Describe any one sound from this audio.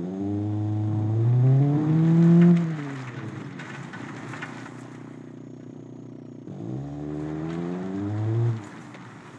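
A car engine revs up and drops back to idle.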